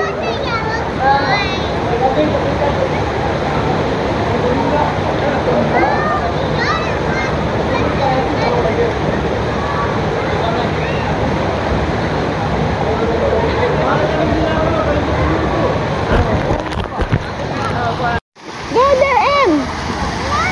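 People wade through shallow water with soft splashing.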